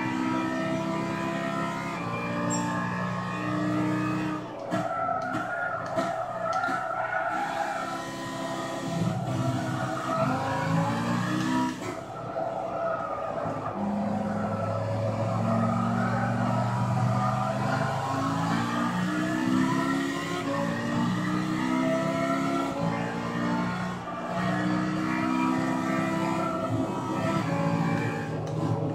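A racing car engine roars, revving up and down as gears shift.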